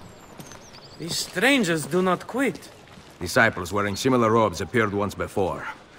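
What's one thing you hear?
A young man speaks calmly and up close.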